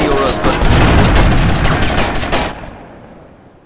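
A vehicle burns with a loud roar after an explosion.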